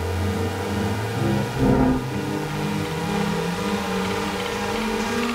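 Electronic music with droning synth tones plays steadily.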